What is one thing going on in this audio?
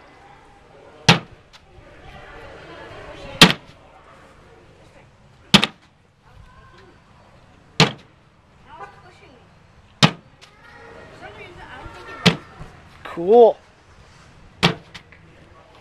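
Bean bags thud one by one onto a wooden board outdoors.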